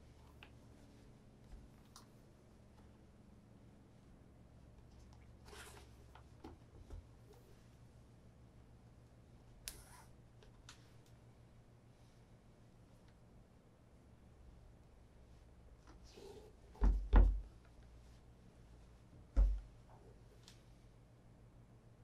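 Shoelaces rustle and slap softly as they are threaded and pulled.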